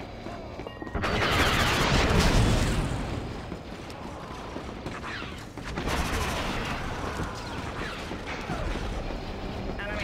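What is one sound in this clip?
Blaster gunfire zaps and crackles in a battle.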